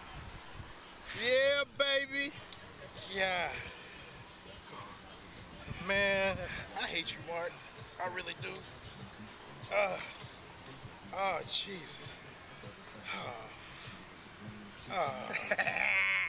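A man laughs on a slingshot ride.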